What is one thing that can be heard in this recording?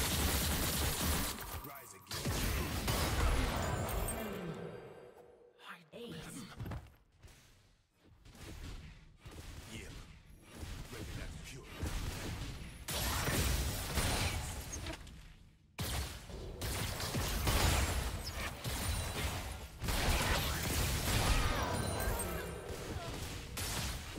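Game spells and weapon hits crash and clang in a fast battle.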